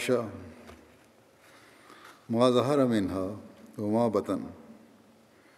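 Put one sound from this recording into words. An elderly man reads out slowly and calmly into a microphone, with pauses.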